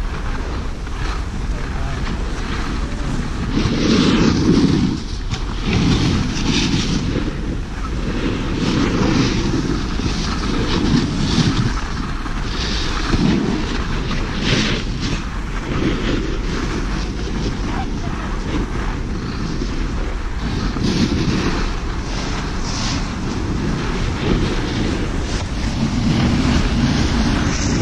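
A snowboard scrapes and hisses over snow.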